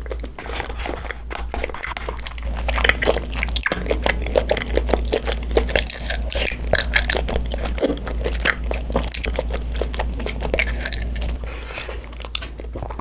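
A young girl chews and slurps food close to a microphone.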